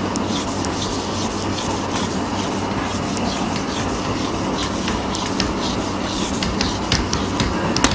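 A whiteboard eraser rubs across a board.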